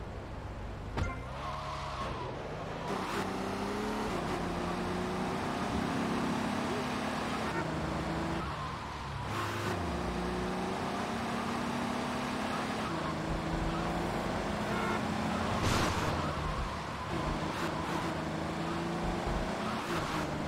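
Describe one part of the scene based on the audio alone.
A car engine revs, rising and falling in pitch as the car speeds along.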